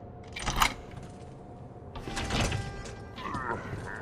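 A metal door creaks open.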